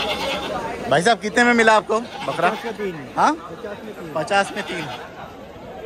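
Goats bleat loudly close by.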